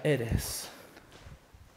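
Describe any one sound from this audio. A young man speaks briefly through a headset microphone.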